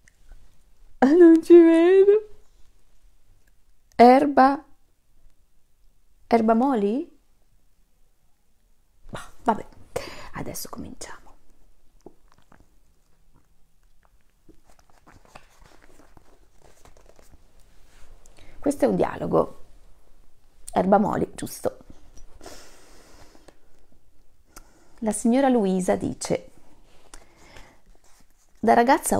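A woman speaks with animation, close by, in short bursts with pauses.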